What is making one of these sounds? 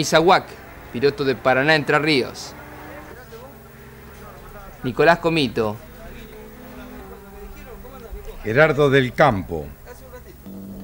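A man speaks close to a microphone in short remarks.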